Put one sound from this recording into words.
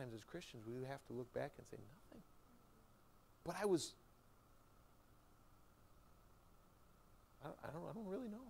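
A man preaches with animation through a microphone in a large room, pausing between phrases.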